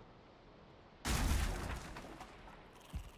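A wooden chest thuds heavily into place.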